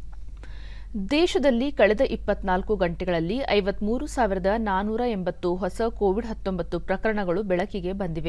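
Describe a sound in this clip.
A woman reads out the news calmly into a microphone.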